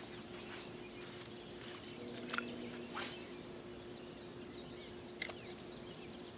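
A fishing reel clicks and whirs.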